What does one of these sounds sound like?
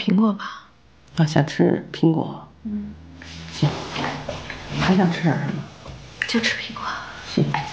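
A middle-aged woman answers calmly nearby.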